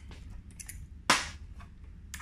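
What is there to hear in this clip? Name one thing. A metal tool is set down on a metal table with a clank.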